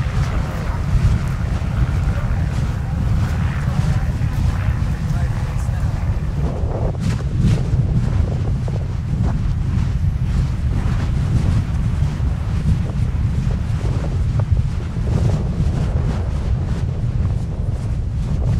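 A volcanic eruption roars with a deep, steady rumble.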